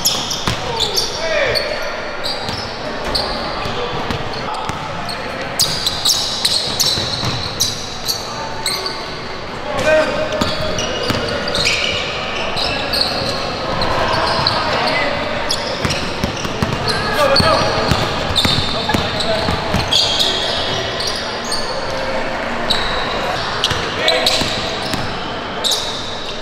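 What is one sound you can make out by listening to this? Sneakers squeak sharply on a hard court.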